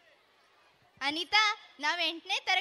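A second young woman sings in reply through a loudspeaker.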